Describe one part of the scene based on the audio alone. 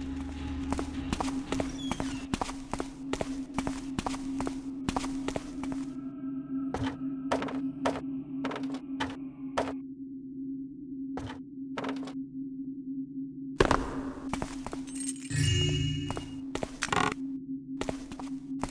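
Footsteps tread at a steady pace across a hard stone floor.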